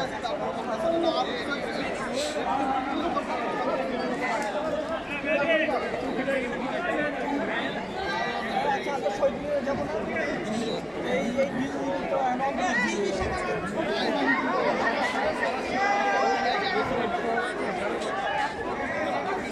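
A crowd of young men and women chatter and talk all around, close by, outdoors.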